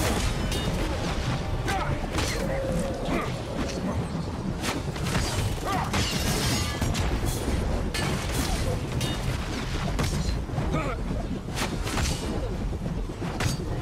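Weapons clash and slash in a fast fight.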